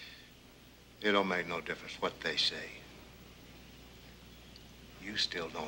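An older man speaks quietly and earnestly close by.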